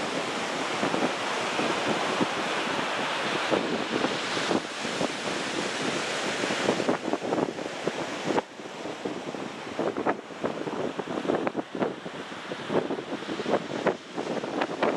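Waves wash and roar steadily onto a beach.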